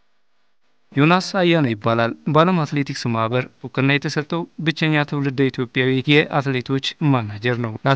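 A man speaks calmly and clearly into a nearby microphone.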